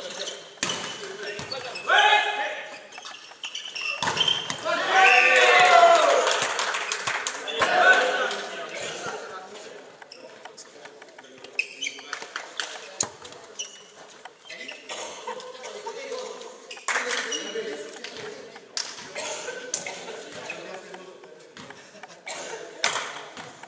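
Sneakers squeak on a hall floor.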